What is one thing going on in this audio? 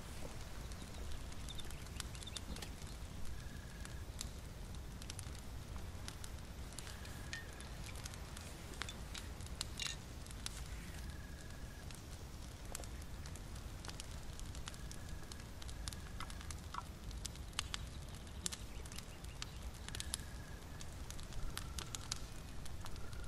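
A small fire crackles and pops softly.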